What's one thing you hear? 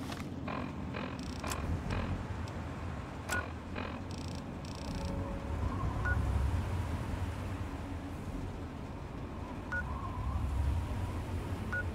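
A handheld device's menu gives short soft beeps as it is clicked through.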